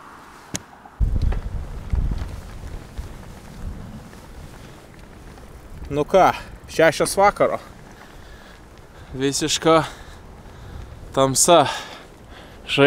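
Wind rumbles against a microphone while riding outdoors.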